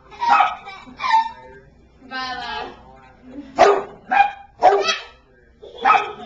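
A toddler babbles and squeals excitedly close by.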